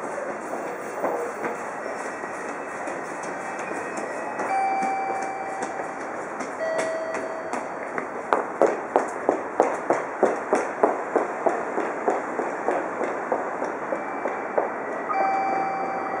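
A train approaches along the tracks with a steady rumble.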